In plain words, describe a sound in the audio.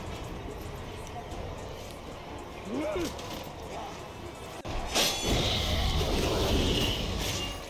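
Heavy weapons clash and thud in a close fight.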